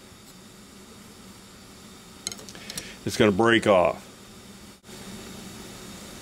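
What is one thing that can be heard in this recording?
A wrench clinks against a metal nut.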